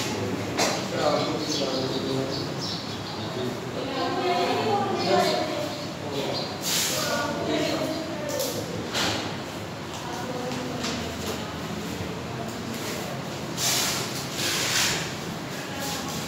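A marker squeaks on a whiteboard.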